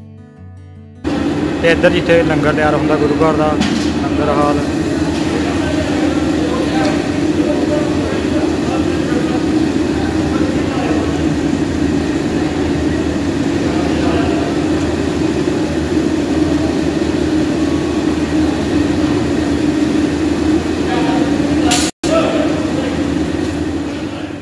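Gas burners roar steadily under cooking pots.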